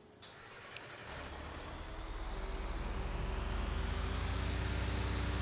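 A heavy truck engine rumbles and revs up as the truck drives off.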